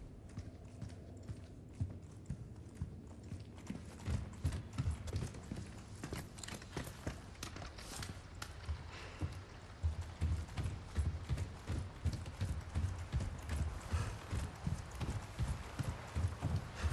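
Footsteps thud steadily on creaking wooden boards.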